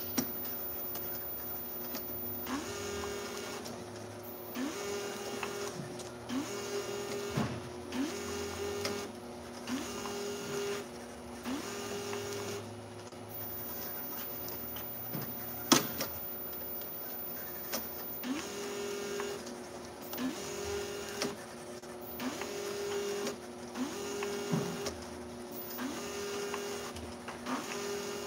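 A labelling machine hums steadily.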